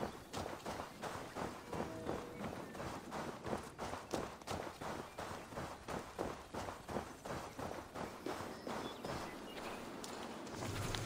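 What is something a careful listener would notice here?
Footsteps tread steadily over grass and gravel.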